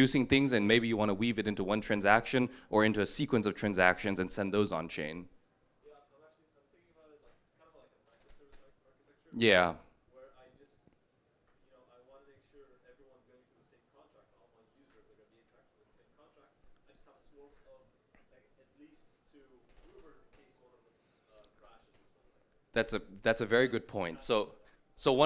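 A young man speaks calmly through a microphone, amplified over loudspeakers.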